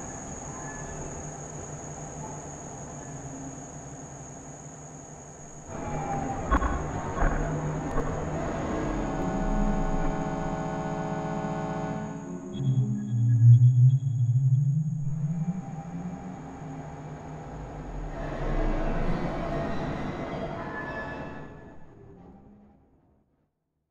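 Looping electronic beats and synth tones play, swelling and dying away.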